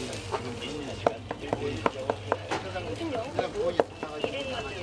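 A metal spatula taps and scrapes on a hot griddle.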